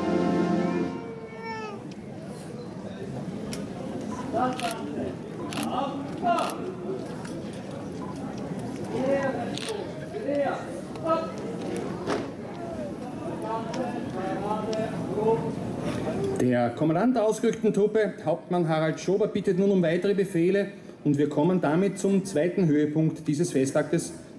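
A crowd of men and women chatters and murmurs outdoors.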